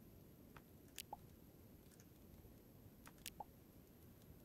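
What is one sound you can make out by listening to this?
Short electronic clicks sound as game items are crafted.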